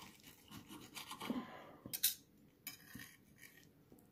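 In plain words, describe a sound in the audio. A fork and knife clink against a plate.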